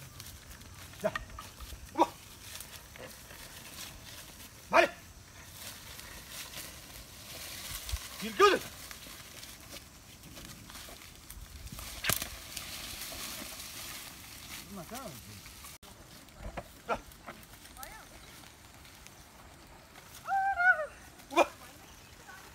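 A man shouts short calls to oxen outdoors.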